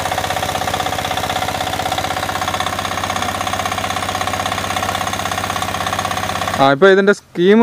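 A small engine chugs steadily close by, then stops abruptly.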